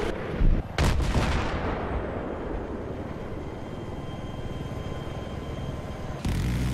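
An attack helicopter drones in flight.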